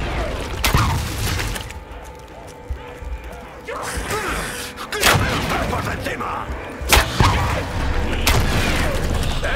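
A weapon fires loud, crackling energy blasts now and then.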